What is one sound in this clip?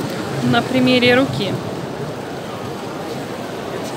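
Plastic wrapping crinkles under a hand.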